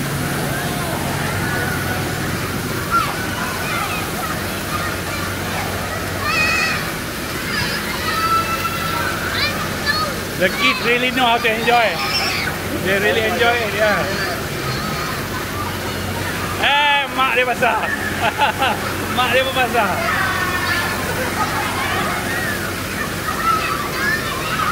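A water hose sprays with a steady hiss.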